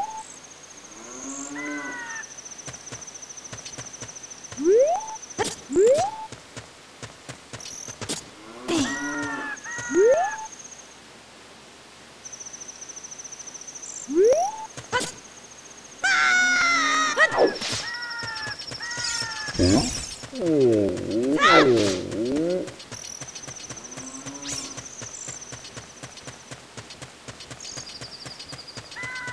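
Footsteps patter quickly on stone in a video game.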